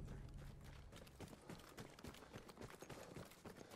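Footsteps run quickly over wet, muddy ground.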